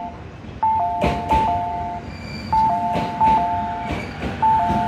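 Train wheels clack over rail joints.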